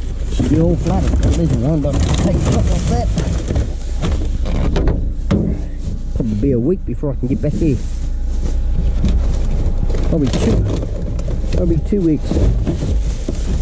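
Plastic bags and cardboard rustle as a hand rummages through a bin.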